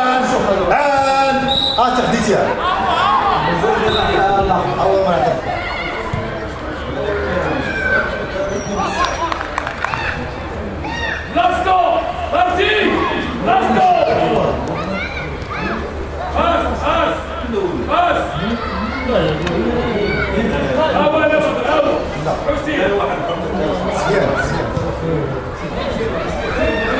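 Several men talk and call out nearby, outdoors.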